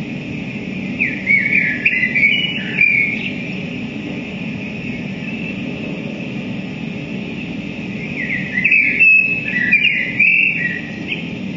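Shrill electronic tones squeal and warble through amplifiers in bursts.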